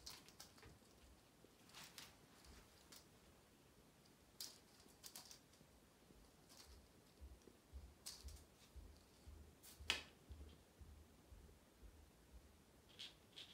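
A cat's paws thump and patter on a wooden floor.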